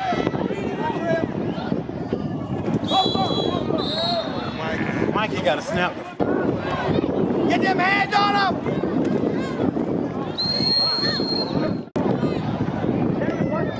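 Children and adults shout and cheer loudly outdoors.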